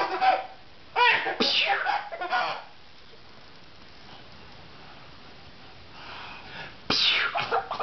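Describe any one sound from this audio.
A baby giggles and squeals happily.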